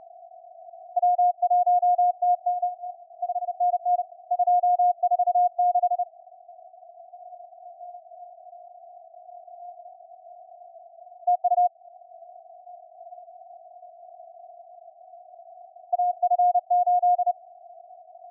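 Morse code beeps in short and long bursts over a radio.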